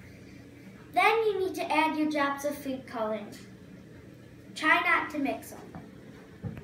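A girl speaks nearby with animation.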